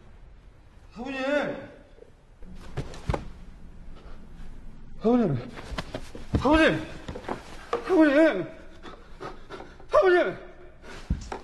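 A young woman cries out loudly and desperately.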